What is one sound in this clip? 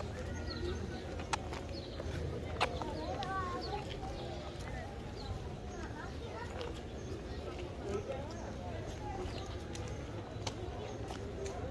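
Adults talk quietly a little way off.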